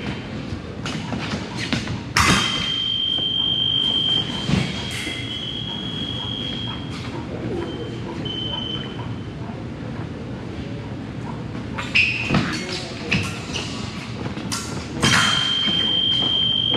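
Fencers' feet stamp and shuffle on a wooden floor in a large echoing hall.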